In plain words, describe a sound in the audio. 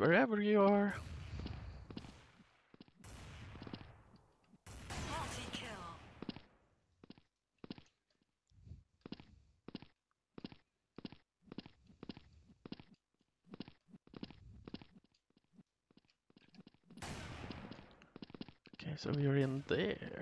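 A rifle fires loud, echoing shots.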